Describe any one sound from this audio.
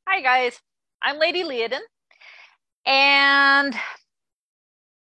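Another middle-aged woman speaks through an online call.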